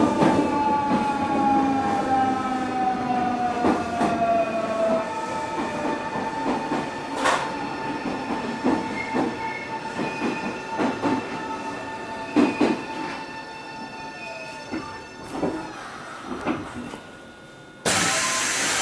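An electric train hums with a whine that slowly drops in pitch, then holds steady.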